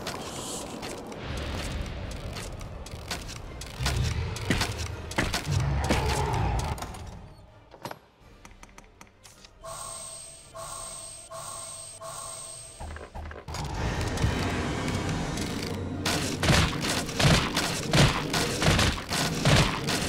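Game combat sounds clash and boom as a fighter battles a winged monster.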